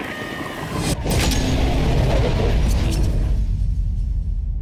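A large blast roars and rumbles.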